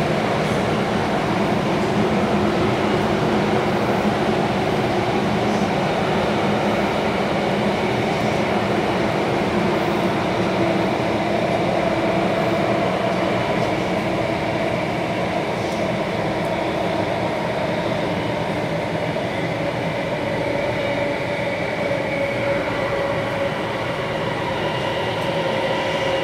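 A subway train rumbles and hums steadily while moving.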